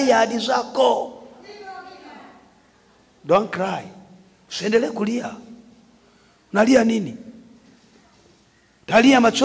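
A man preaches forcefully into a microphone in short, loud bursts, with echo in a large room.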